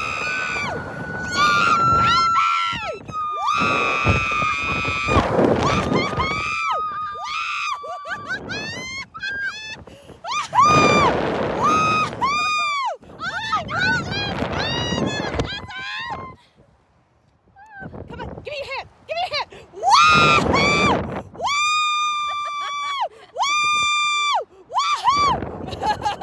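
Two women laugh loudly close by.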